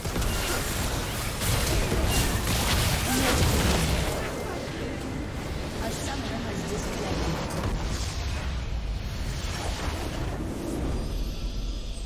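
Spell effects and attacks crackle and burst in a game battle.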